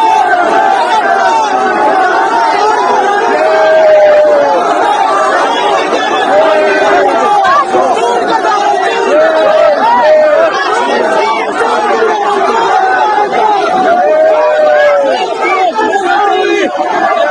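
A crowd of men shout and argue loudly at close range.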